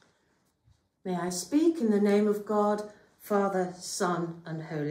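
An elderly woman speaks calmly and clearly close by.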